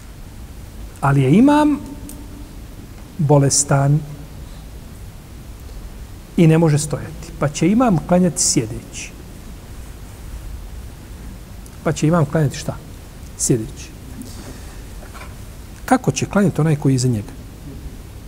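A middle-aged man speaks calmly in short phrases into a nearby microphone, with pauses between them.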